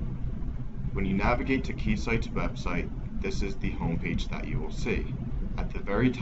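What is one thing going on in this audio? A young man talks calmly into a computer microphone.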